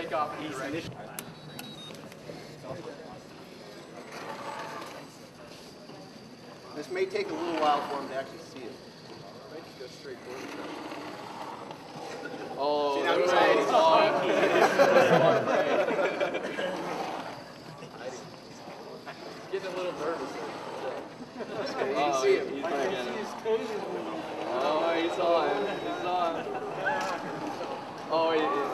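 People talk and call out nearby in a large echoing hall.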